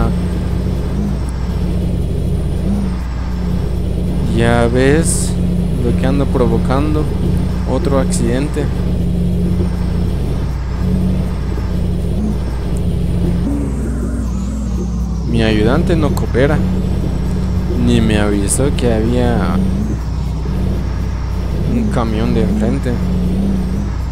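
A bus engine rumbles steadily as it drives slowly.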